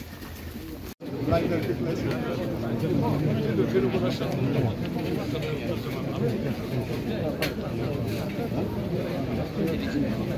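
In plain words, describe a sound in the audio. A crowd of men murmurs and talks nearby outdoors.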